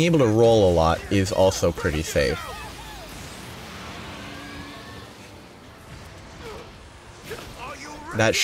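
Blades strike and clang against a large monster.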